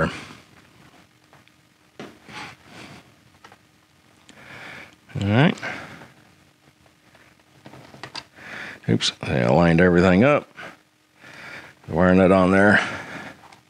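Thin wires rustle and scrape as hands twist them together.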